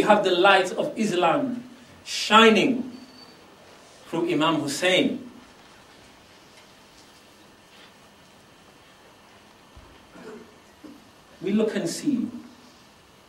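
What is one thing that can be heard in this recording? A man speaks slowly and solemnly, close by, with long pauses.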